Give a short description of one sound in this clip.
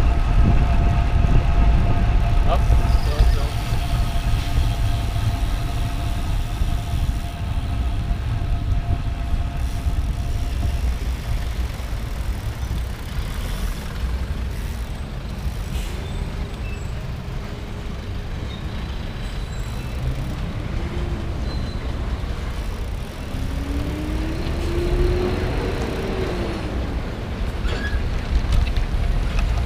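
Wind rushes steadily past the bicycle.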